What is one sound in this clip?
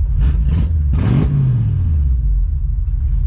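A car engine revs up briefly and drops back.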